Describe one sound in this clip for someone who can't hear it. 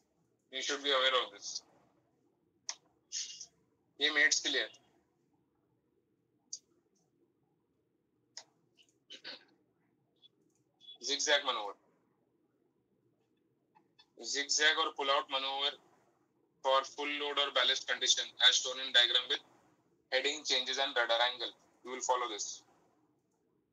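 A young man speaks calmly over an online call, in short bursts with pauses.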